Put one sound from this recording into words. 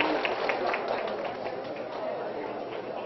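A small crowd applauds with brisk clapping.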